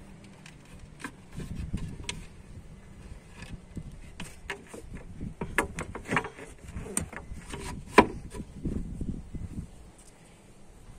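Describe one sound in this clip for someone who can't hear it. A wooden board is handled and knocks against a car boot floor.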